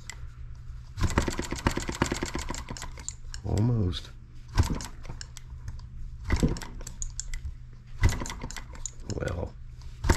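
A small engine chugs rapidly in short bursts, then slows and stops.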